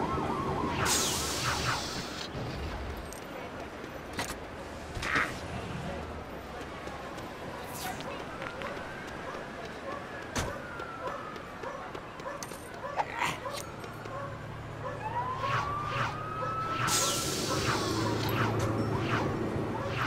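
Short chimes and whooshes play.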